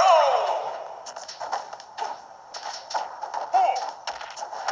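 Fighting sounds thump and whoosh in quick bursts.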